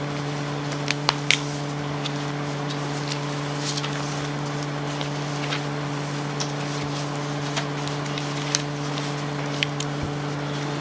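Papers rustle faintly nearby.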